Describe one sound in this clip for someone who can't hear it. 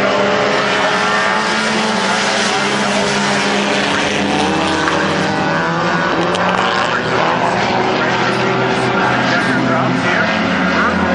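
Small four-cylinder race cars roar at full throttle around a dirt oval.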